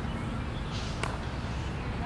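A cricket bat strikes a ball with a single sharp crack in the distance.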